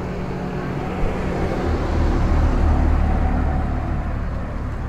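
A car drives slowly past, its engine rumbling.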